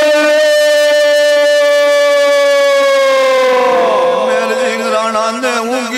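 A young man sings a long held note into a microphone, then his voice wavers into quick turns.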